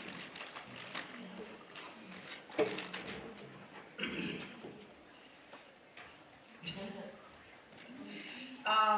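A woman speaks calmly to an audience through a microphone in a large echoing room.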